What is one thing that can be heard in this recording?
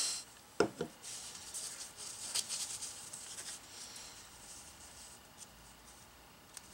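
Paper rustles and crinkles under fingers.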